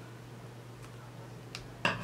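Scissors snip a thread.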